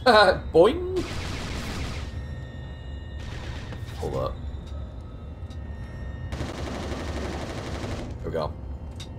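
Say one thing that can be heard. Gunfire rattles in bursts.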